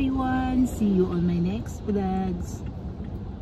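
A young woman speaks expressively close to the microphone.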